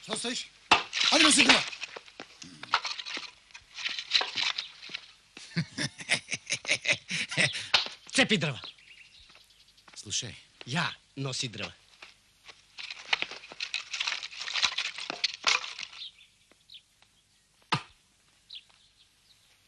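An axe chops into a log with sharp knocks.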